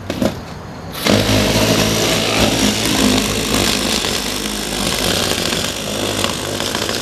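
A battery-powered saw buzzes loudly as it cuts through a car windshield.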